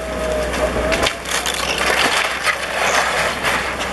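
A wooden shed collapses with cracking and crashing timber.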